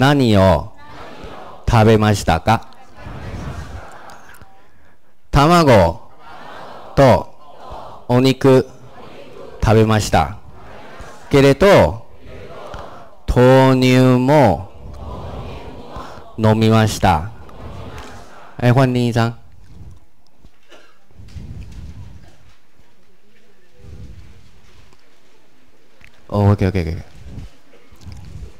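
A man speaks into a microphone in short, clear phrases, like a teacher reading out and explaining.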